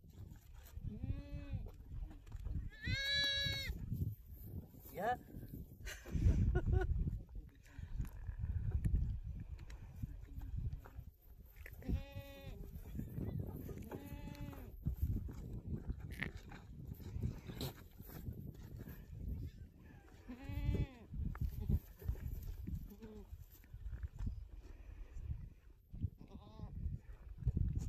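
Goats bleat loudly nearby.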